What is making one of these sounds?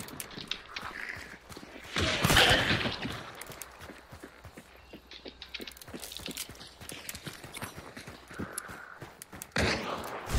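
Footsteps tread steadily on dirt and wooden boards.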